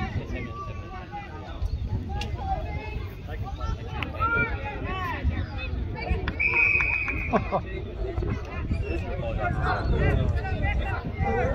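Young players shout and call out across an open field.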